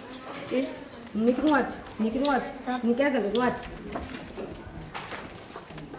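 A young child reads aloud softly.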